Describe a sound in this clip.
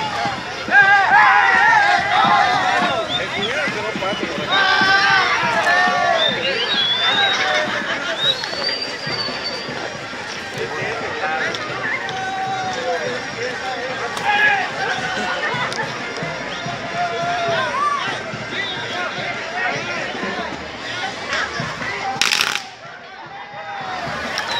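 Fireworks crackle and bang nearby.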